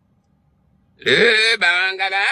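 A man sings loudly close by.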